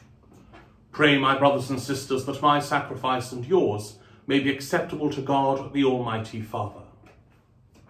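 A middle-aged man speaks calmly and clearly, close by, in a room with a slight echo.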